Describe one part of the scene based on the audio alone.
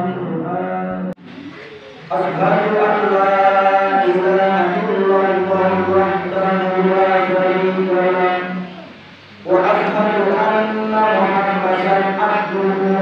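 A man preaches in a sustained, chanting voice through a microphone and loudspeaker, echoing in a large room.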